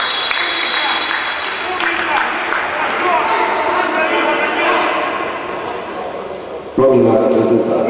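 A crowd cheers in an echoing indoor hall.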